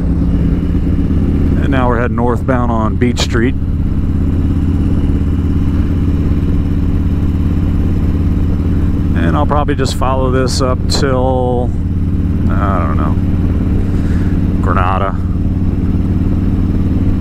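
A motorcycle engine rumbles steadily while riding.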